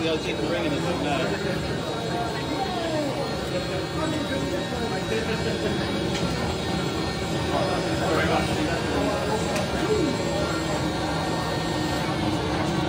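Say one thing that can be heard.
A small toy robot whirs as it rolls across a hard surface.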